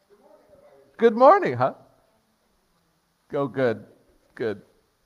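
A man speaks animatedly through a microphone.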